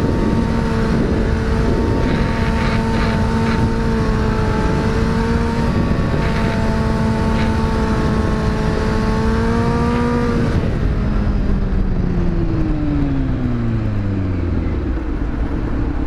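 A motorcycle engine hums steadily at high revs, then drops in pitch as it slows.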